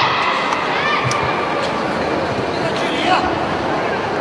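Boxing gloves thud against a fighter's body.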